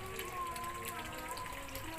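Water trickles from a pipe into a tank.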